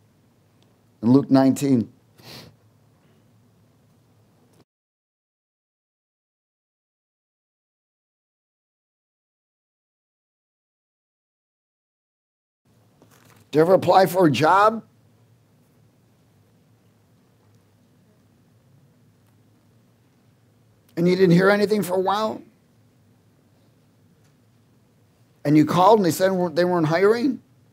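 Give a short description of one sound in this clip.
A middle-aged man speaks calmly into a microphone in short phrases, with long pauses.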